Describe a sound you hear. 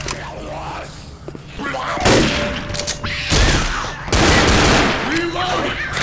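A pistol fires a couple of sharp shots.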